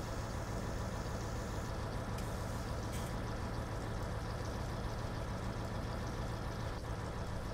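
A tractor engine hums steadily at low speed.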